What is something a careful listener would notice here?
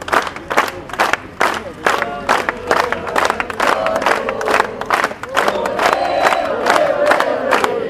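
A crowd outdoors chants and shouts loudly.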